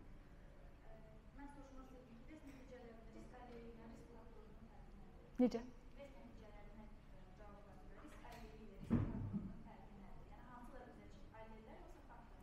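A young woman speaks calmly into a microphone in a large room.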